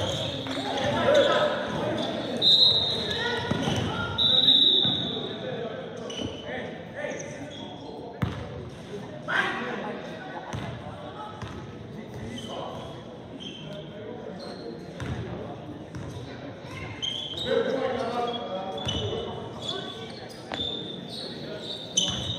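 Young men shout and call out across a gym.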